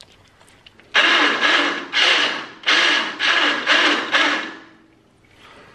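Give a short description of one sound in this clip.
A starter motor cranks an engine in loud, pulsing bursts.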